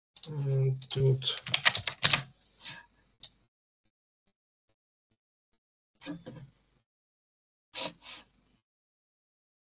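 An older woman speaks calmly over an online call, in short bursts with pauses.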